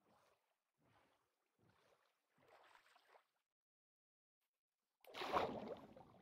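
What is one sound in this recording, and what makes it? Water splashes as a video game character swims.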